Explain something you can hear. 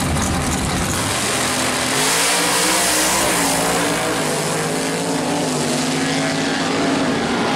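Two drag racing engines roar as the cars launch and speed away down the track.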